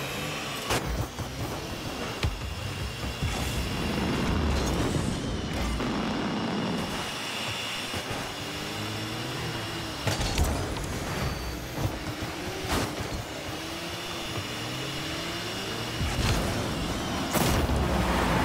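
A ball is struck with sharp thuds.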